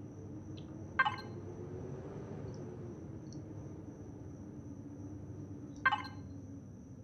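A menu clicks open and shut.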